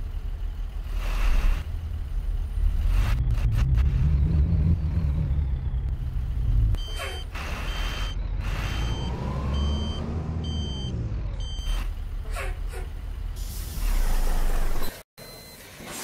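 A bus engine rumbles and revs up and down.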